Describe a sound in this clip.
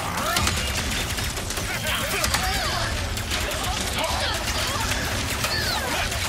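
Guns fire rapid laser blasts.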